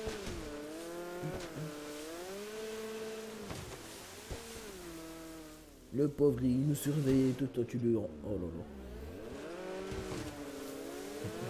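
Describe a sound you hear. A jet ski engine drones and revs up and down.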